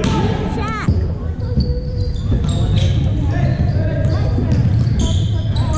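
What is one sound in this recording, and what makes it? Basketball shoes squeak sharply on a gym floor.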